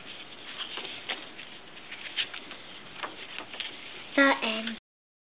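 Paper rustles and crinkles as pages are handled up close.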